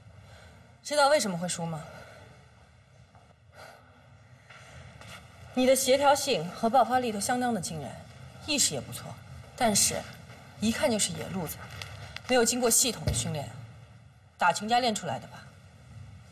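A young woman speaks calmly and firmly close by.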